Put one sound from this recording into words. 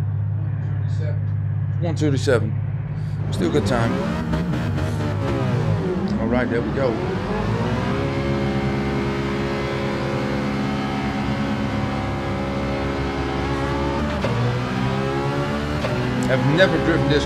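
A racing car engine idles with a low hum, then revs and roars as it speeds up, shifting gears.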